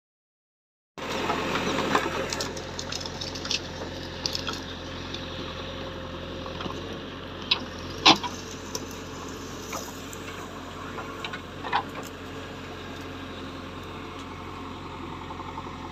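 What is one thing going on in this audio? A digger bucket scrapes and crunches through dry soil and brush.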